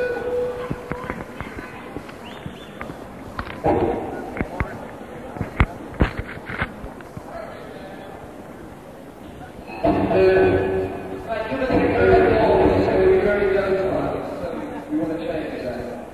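An acoustic guitar is played.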